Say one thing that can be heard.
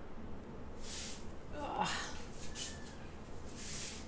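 A stiff board scrapes softly as it is lifted from a paper-covered surface.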